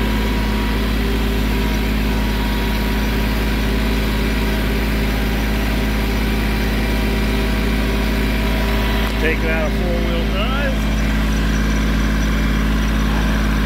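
A tractor engine hums steadily up close.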